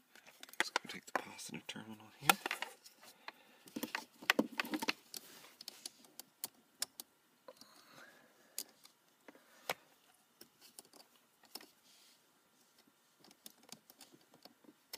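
Wires and metal parts click and rattle as hands handle them.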